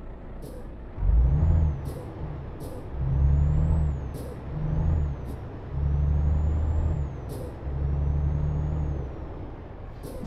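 A truck engine roars louder in several bursts as it speeds up.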